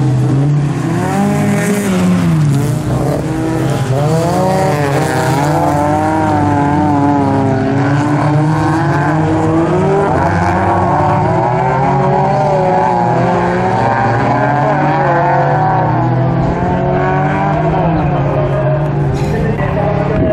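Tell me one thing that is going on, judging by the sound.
Car engines whine up and down in pitch as the cars speed up and slow through bends.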